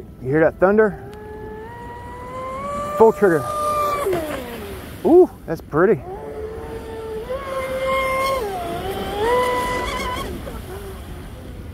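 A small model boat motor whines across the water, rising and falling in pitch.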